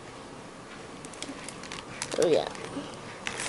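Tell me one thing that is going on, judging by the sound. Plastic wrapping crinkles and rustles close by.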